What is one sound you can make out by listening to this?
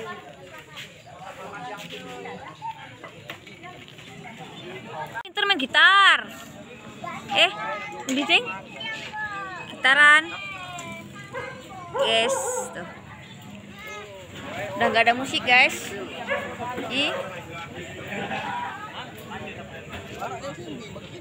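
A crowd of people chatter outdoors.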